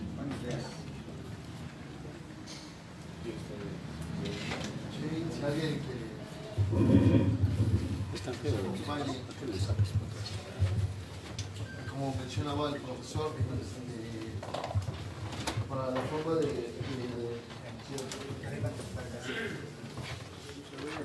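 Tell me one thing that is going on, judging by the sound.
A man speaks loudly to a group in an echoing room.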